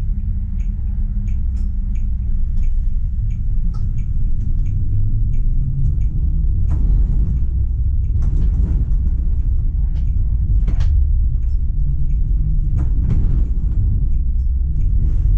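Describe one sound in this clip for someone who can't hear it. A tram rumbles steadily along its rails.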